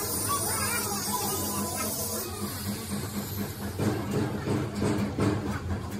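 Liquid splashes as parts are scrubbed in a tank.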